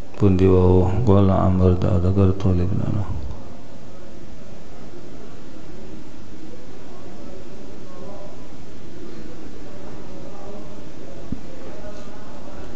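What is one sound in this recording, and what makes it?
An older man chants and reads aloud through a microphone.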